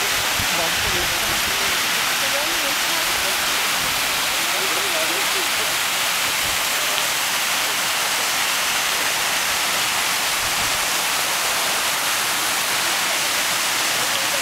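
Fountains splash and gush steadily outdoors.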